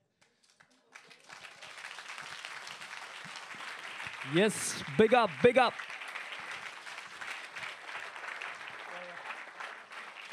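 An audience cheers and applauds in a large room.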